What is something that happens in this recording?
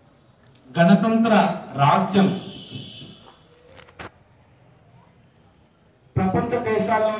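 A man gives a speech through a loudspeaker, outdoors.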